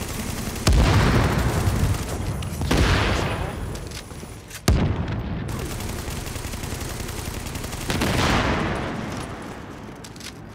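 Loud explosions boom and rumble, one after another.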